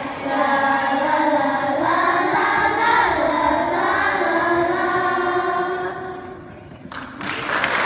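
A children's choir sings together, close by.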